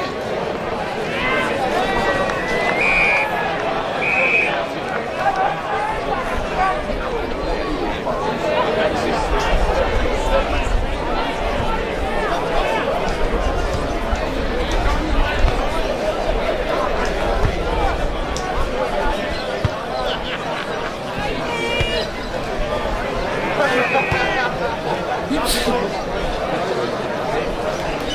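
Spectators chatter and call out from the sidelines.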